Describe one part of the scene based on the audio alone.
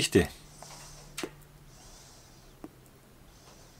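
A man puffs softly on a pipe.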